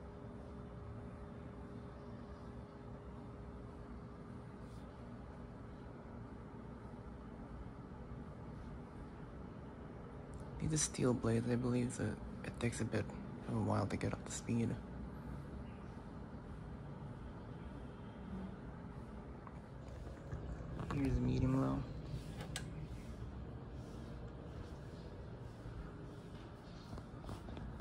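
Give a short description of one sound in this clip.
A ceiling fan whirs steadily with a soft low hum.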